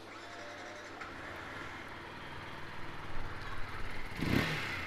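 A motorcycle engine idles with a steady low putter.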